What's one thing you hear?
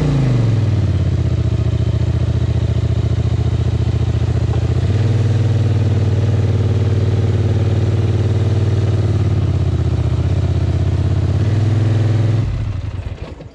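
A quad bike engine revs loudly, then cuts out.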